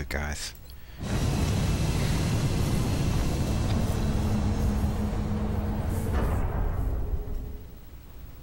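A jet aircraft roars loudly as it takes off, then fades.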